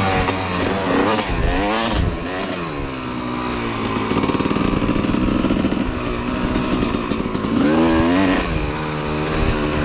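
A dirt bike engine revs up and down close by.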